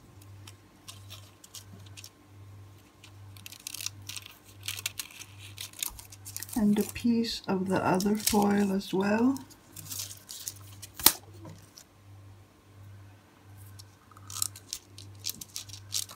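Scissors snip through thin metal foil.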